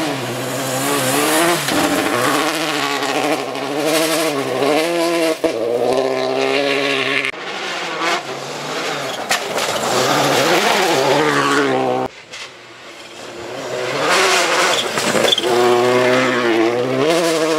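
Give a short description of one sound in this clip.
Gravel sprays and rattles under spinning tyres.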